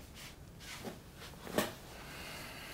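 A young man drops onto a bed with a soft thump.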